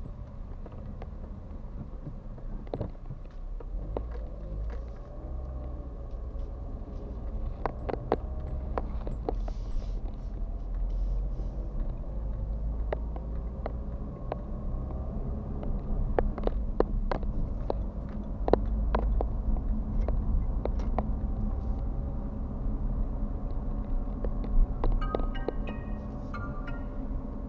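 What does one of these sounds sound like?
Small things rattle and click inside the car.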